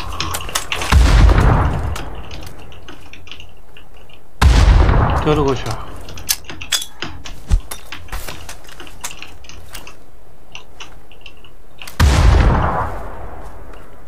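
Loud gunshots bang and echo across open ground.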